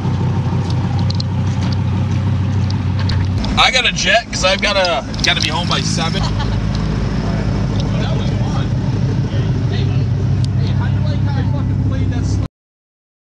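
A sports car engine rumbles deeply at idle.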